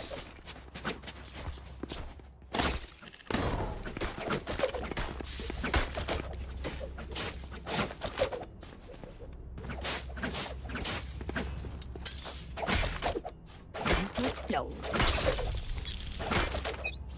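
A knife swishes through the air in quick slashes.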